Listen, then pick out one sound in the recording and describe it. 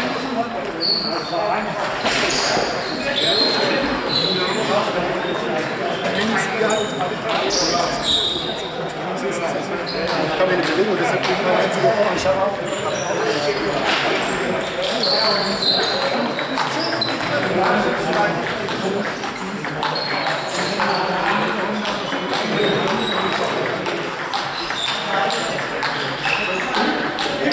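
Table tennis balls click on tables and bats nearby.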